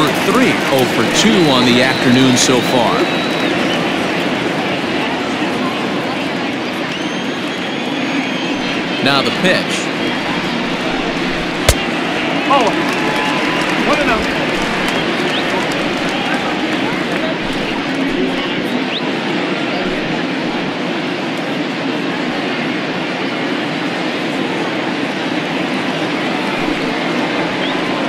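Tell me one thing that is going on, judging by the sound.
A large crowd cheers and murmurs steadily in an open stadium.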